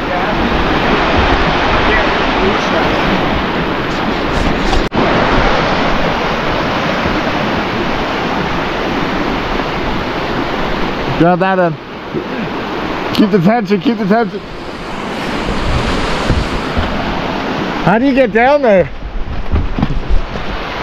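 Water rushes and splashes over rocks close by.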